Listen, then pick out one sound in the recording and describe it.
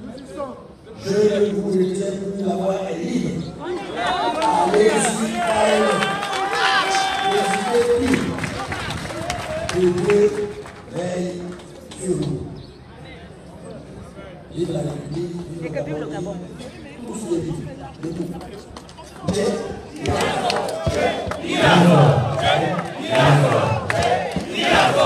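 An elderly man speaks loudly into a microphone through a loudspeaker outdoors.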